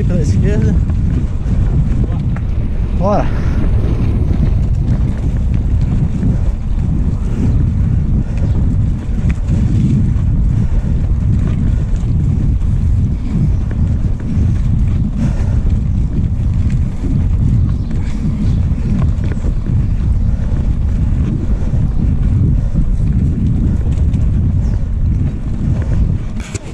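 Bicycle tyres rattle over cobblestones.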